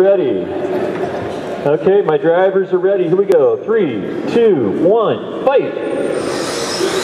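Small electric motors whine, revving up and down in quick bursts.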